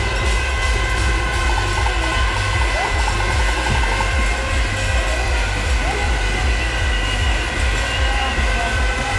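A large outdoor crowd murmurs and shouts loudly.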